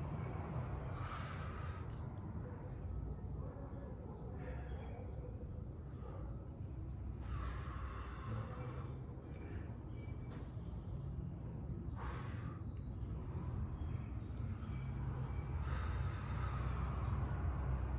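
A man breathes out hard with effort.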